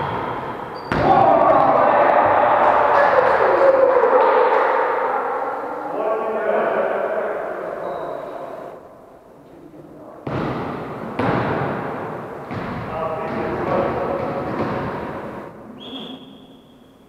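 Men and women call out to each other as they play.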